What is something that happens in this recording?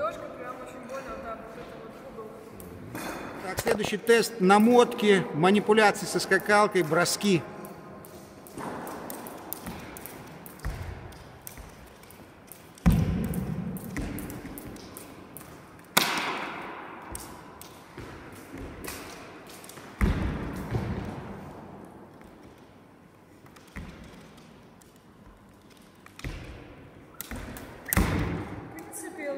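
A skipping rope slaps quickly on a wooden floor in a large echoing hall.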